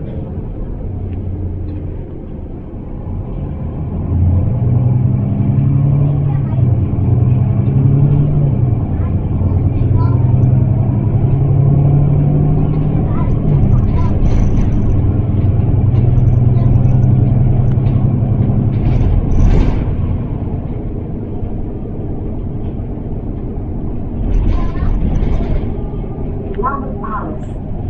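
A bus body rattles and creaks on the road.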